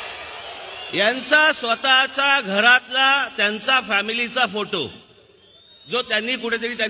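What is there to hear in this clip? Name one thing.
A man speaks forcefully through a loudspeaker microphone.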